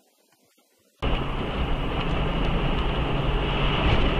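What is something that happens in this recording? A car drives fast along a highway with a steady roar of tyres and engine.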